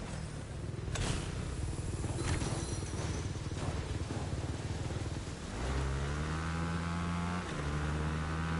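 A motorbike engine rumbles and revs up.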